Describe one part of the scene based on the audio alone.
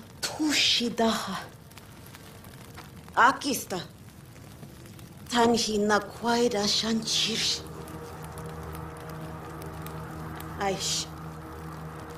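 A young woman speaks intensely and dramatically, close by.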